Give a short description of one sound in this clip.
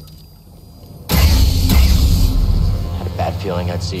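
A lightsaber ignites with a sudden loud hiss.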